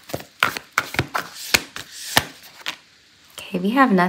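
A card is laid down on a table with a soft tap.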